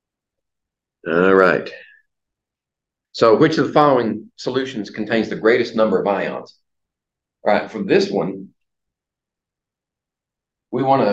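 An older man lectures with animation, in short bursts.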